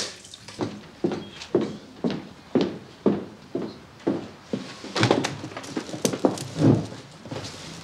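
High heels click steadily on a hard floor.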